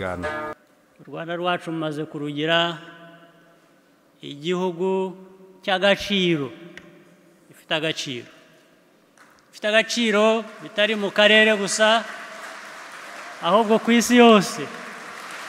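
A man speaks calmly and firmly through a microphone.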